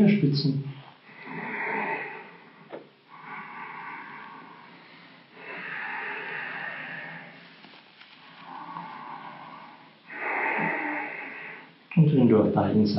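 A man breathes in and out slowly and deeply.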